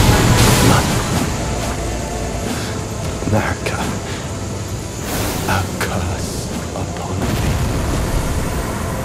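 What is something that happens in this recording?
Magic spells whoosh and shimmer in bursts.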